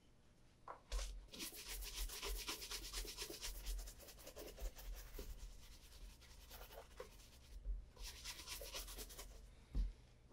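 A stiff brush scrubs rapidly back and forth across a leather shoe.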